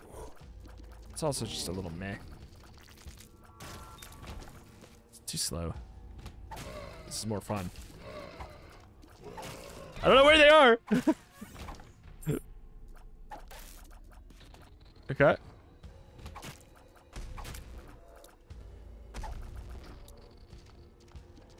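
Game sound effects pop and splat in quick bursts.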